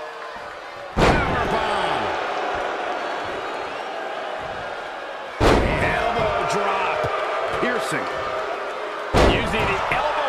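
A body slams heavily onto a wrestling mat several times.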